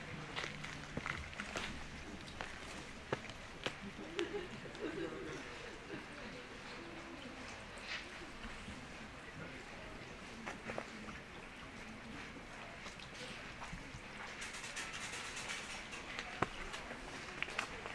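Shallow water flows gently over a stony bed.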